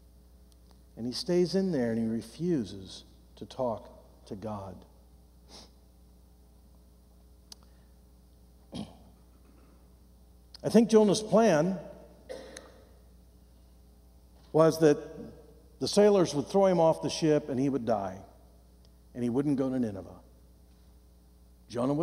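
A middle-aged man speaks calmly into a microphone in a large hall, with pauses between phrases.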